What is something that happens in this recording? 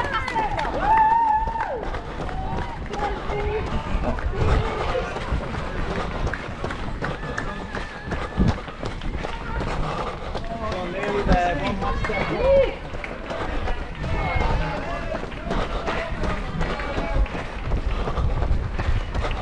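Spectators of mixed ages cheer and shout encouragement nearby.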